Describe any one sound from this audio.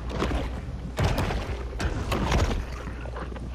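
Water churns and bubbles in sudden bursts.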